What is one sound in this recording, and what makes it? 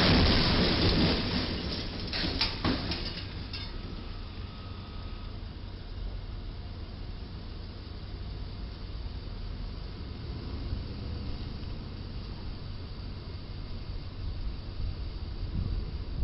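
A truck engine idles with a low rumble.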